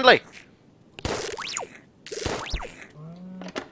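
A laser gun fires with a short electronic zap.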